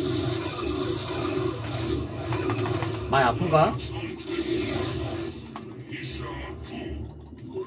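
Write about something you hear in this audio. Electronic game sounds of battle and bleeps play from speakers.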